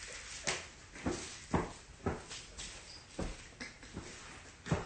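Footsteps and thumps sound on the floor nearby.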